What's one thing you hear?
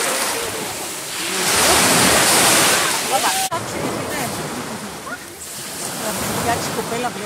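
Young men and women chatter nearby.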